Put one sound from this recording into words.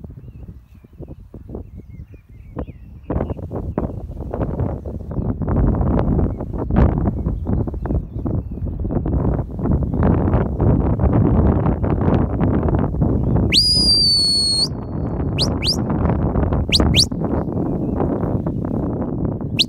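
Wind buffets the microphone outdoors, growing stronger.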